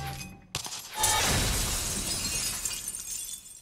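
A heavy body crashes to the floor.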